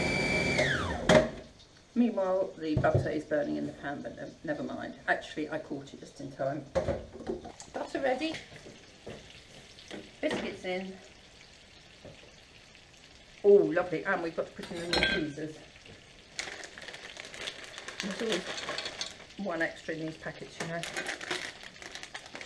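Dishes and utensils clatter and knock.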